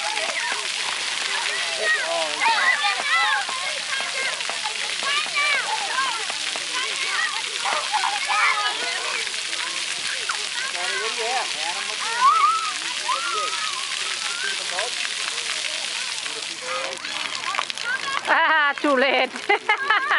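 Children shout and squeal excitedly nearby.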